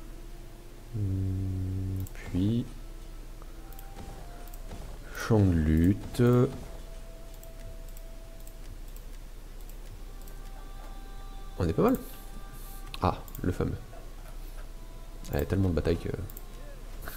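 Short game interface tones sound as menu items are selected.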